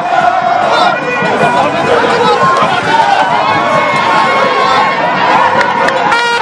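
A large crowd of men and women cheers and shouts excitedly close by.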